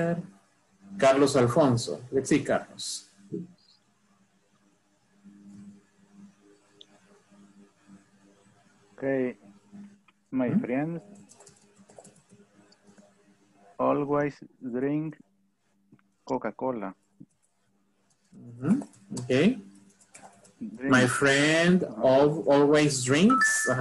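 A young man speaks calmly through an online call, in short phrases.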